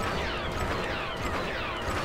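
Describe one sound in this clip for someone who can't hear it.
Laser blasters fire in quick zaps.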